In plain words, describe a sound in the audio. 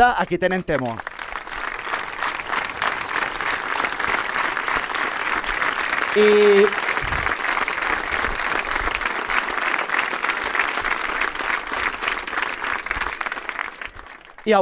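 A large crowd claps and cheers outdoors.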